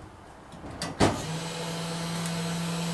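An electric machine motor starts and hums steadily.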